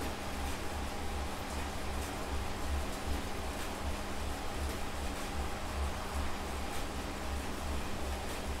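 A stationary bike trainer whirs with a steady, pulsing hum.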